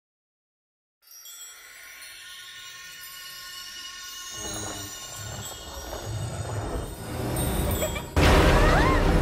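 A shimmering magical hum swells and rises in pitch.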